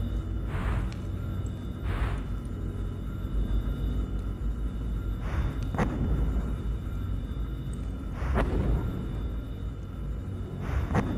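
Heavy footsteps land with soft thuds on a metal platform.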